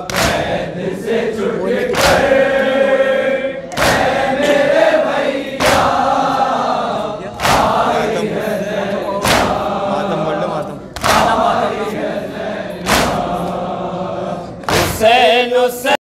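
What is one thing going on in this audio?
A large crowd of men chants loudly together in an echoing hall.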